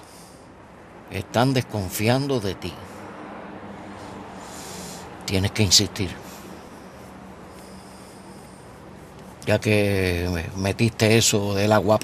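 An older man speaks in a low, earnest voice up close.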